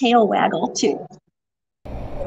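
A woman talks calmly into a microphone close by.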